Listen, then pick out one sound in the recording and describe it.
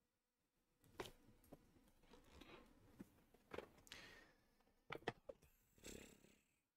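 A computer mouse clicks.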